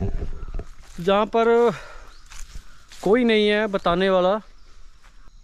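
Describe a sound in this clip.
A man close by calls out loudly in long, drawn-out tones.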